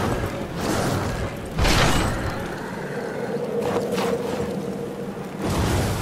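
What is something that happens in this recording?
Heavy armoured footsteps thud on stone.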